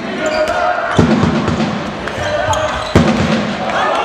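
A ball thuds hard against a goal and the floor.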